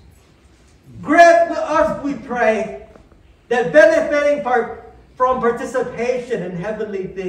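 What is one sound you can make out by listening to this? A man chants in a strong voice through a microphone.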